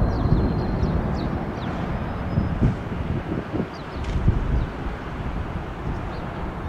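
Jet engines roar loudly as an airliner climbs away overhead.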